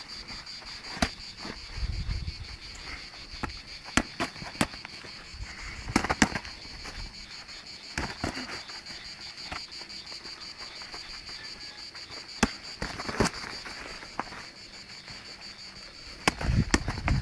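Boxing gloves thud sharply against bodies and gloves in short bursts.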